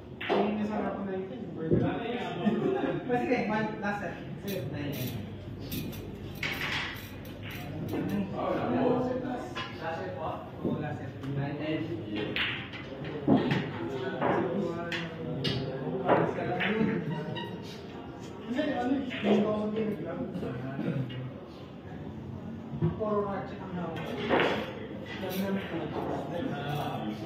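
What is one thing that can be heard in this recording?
A cue strikes a billiard ball.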